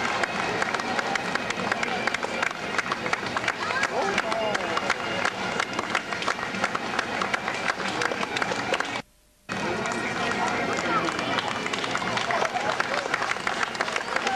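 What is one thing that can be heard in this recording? A crowd claps and cheers steadily outdoors.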